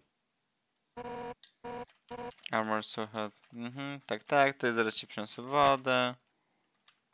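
Rapid pitched electronic beeps chatter as a game character speaks.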